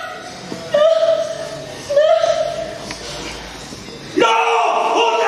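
A young woman screams in distress close by.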